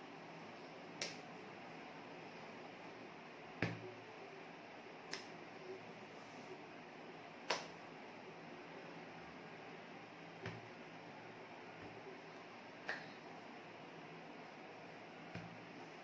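Hands clap and tap together sharply now and then.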